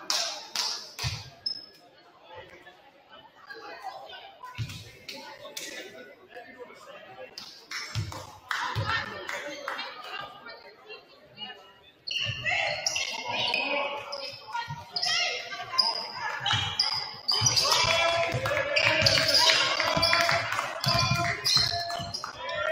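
A basketball bounces on a hard wooden floor, echoing in a large hall.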